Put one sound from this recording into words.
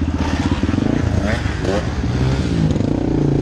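A second dirt bike engine buzzes nearby.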